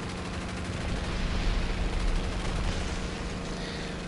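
A bomb explodes with a deep, rumbling boom.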